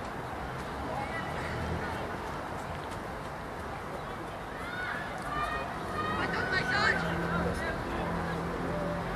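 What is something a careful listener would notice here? Young men shout to each other from across an open field.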